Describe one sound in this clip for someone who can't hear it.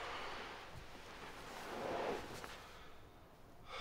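A young man shifts about, with clothing rustling.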